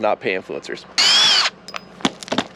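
A cordless driver whirs in a short burst.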